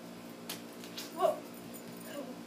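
A small toy drops onto a hard floor with a soft knock.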